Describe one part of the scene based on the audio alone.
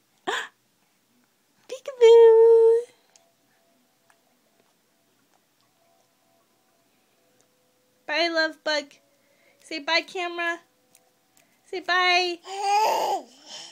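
A baby squeals and babbles happily close by.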